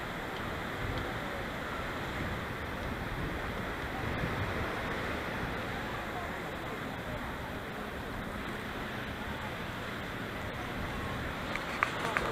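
Waves crash against rocks below.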